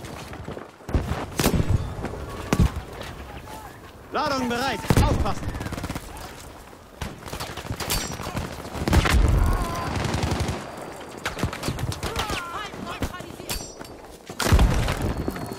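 Gunshots crack and explosions boom nearby.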